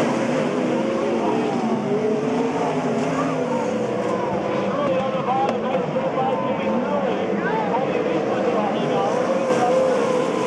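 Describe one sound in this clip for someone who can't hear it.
Several race car engines roar loudly, their pitch rising and falling as the cars speed past.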